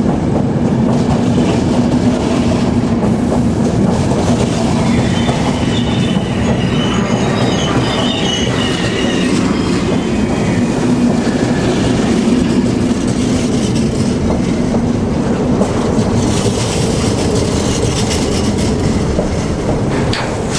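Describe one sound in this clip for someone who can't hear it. A train rumbles steadily past at close range.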